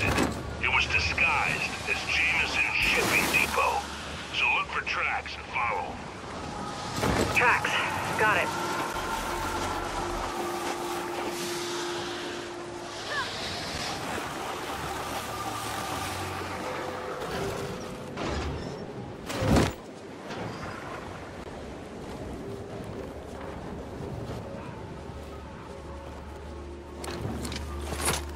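A heavy sled scrapes and rattles over ice.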